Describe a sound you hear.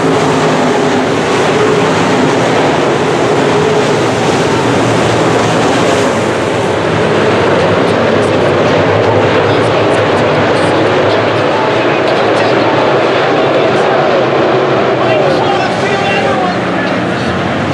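Race car engines roar loudly.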